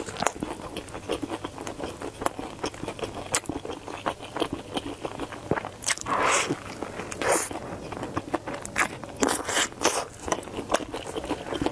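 A woman bites and chews crunchy food close to a microphone.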